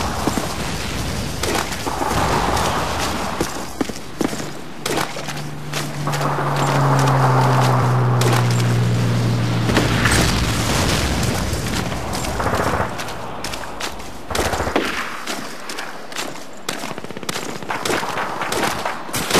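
Footsteps crunch on dry dirt and grass.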